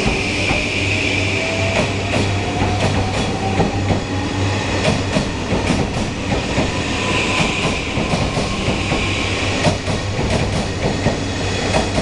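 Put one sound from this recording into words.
A train rumbles past close by at speed.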